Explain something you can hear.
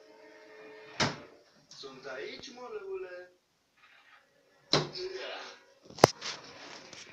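A wooden drawer bangs shut.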